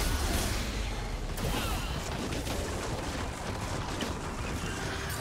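Video game combat effects crackle and burst in quick succession.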